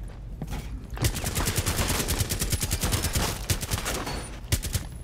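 Rapid automatic gunfire rattles in a fast burst.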